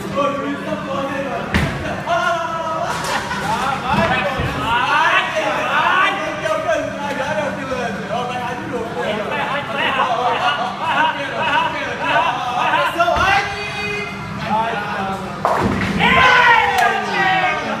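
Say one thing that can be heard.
A bowling ball rolls down a lane and crashes into pins.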